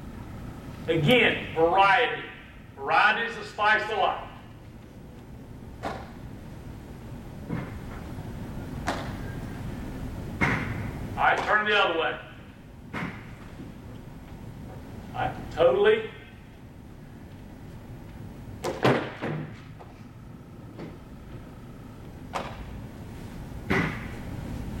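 A man speaks loudly to an audience in a room with some echo.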